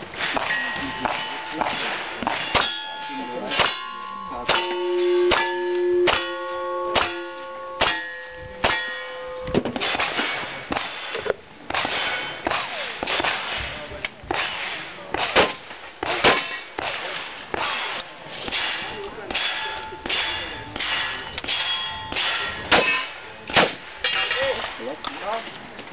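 Gunshots crack sharply one after another outdoors.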